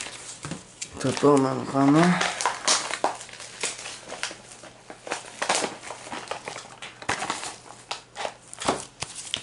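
Plastic toy packaging crinkles and rustles as a hand handles it.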